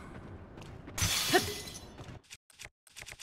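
A loud blast bursts with a crackling explosion.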